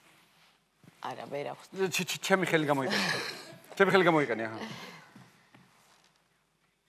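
A man talks animatedly into a microphone.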